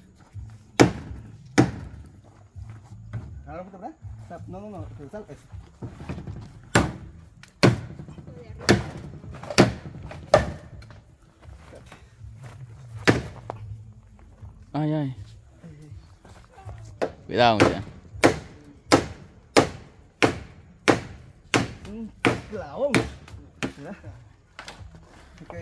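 A hammer knocks sharply on a wooden frame.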